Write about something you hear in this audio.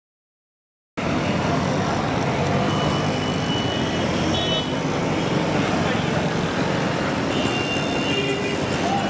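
Motorbikes and auto rickshaws putter by on a busy street.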